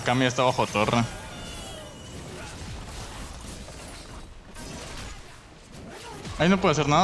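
Video game spells crackle and burst during a fight.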